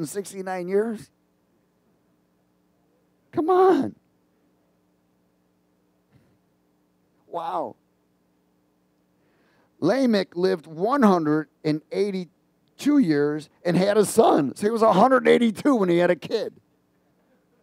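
A middle-aged man speaks with animation through a headset microphone, pausing often.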